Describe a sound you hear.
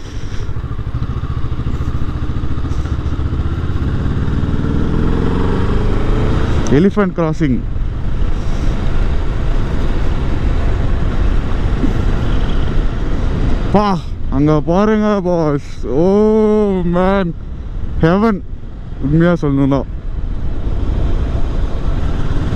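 A motorcycle engine hums and revs up and down between gear shifts.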